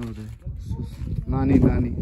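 Footsteps in sandals scuff on dry gravelly ground.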